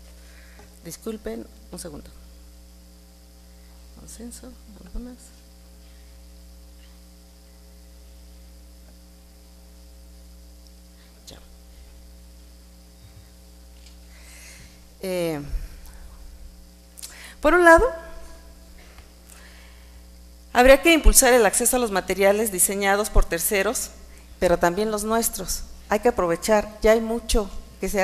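A middle-aged woman speaks calmly through a microphone in a large hall.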